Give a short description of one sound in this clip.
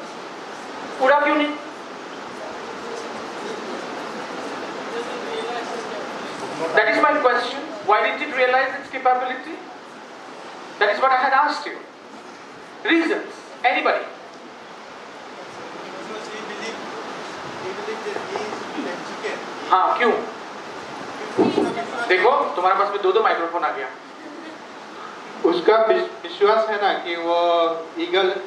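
A man speaks with animation into a microphone, heard through a loudspeaker in an echoing room, with pauses between phrases.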